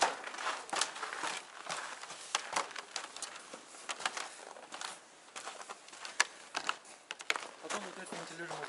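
Footsteps crunch and squeak on packed snow.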